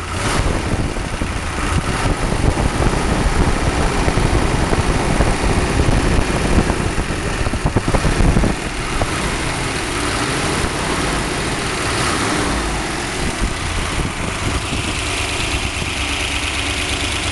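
A car engine idles with a steady, rough rumble.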